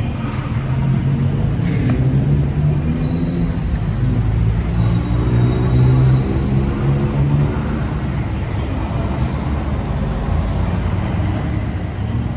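Motorbike engines rumble and rev nearby.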